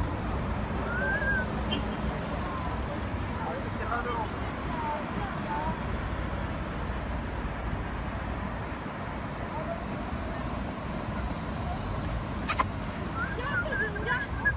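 A car engine hums close by.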